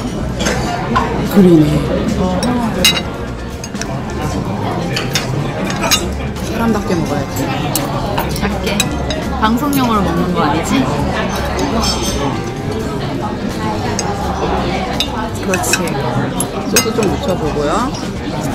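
Metal cutlery clinks and scrapes against a plate.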